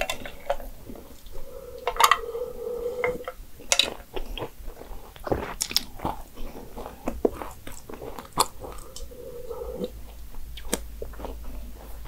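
A young woman gulps down a drink close to a microphone.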